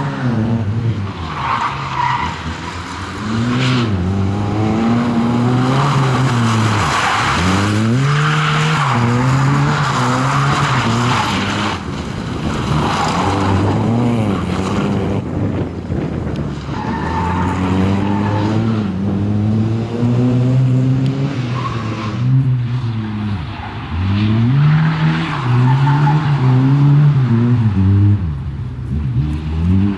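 A small hatchback rally car's engine revs hard, rising and falling between gear changes.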